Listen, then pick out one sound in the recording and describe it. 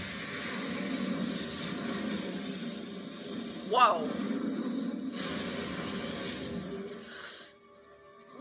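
A fiery explosion roars loudly.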